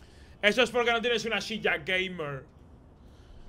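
A young man talks loudly and with animation into a close microphone.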